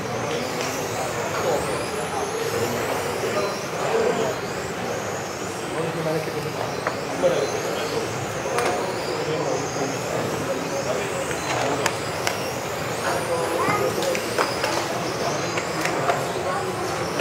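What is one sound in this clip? Small electric model cars whine as they race around a large echoing hall.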